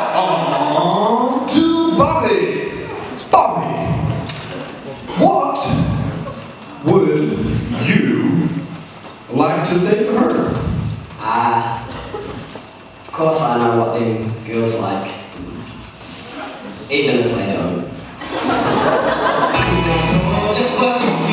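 A group of young people sings loudly in a large echoing hall, in short phrases.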